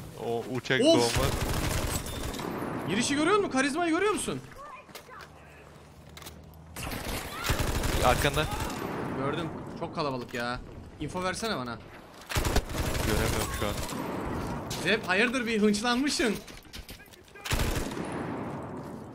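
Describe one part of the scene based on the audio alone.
Rifle shots ring out in loud bursts.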